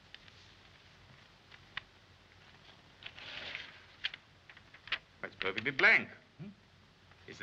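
Paper rustles as a man opens a letter.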